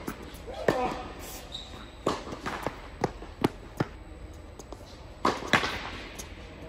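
Tennis balls are struck with rackets, echoing in a large indoor hall.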